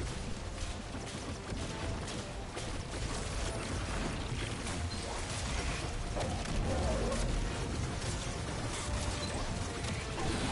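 Energy beams crackle and hum.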